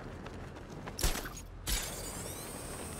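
A cape flaps and snaps in the wind.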